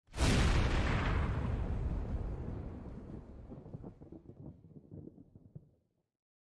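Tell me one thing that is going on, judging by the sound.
A heavy slab slams into rock with a deep rumble that slowly fades.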